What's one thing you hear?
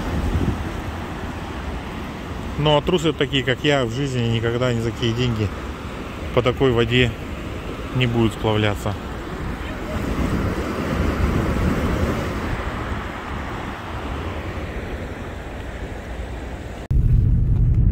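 A swollen river rushes and gurgles close by.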